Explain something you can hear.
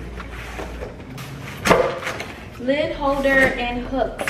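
A cardboard box flap knocks and scrapes as it is opened.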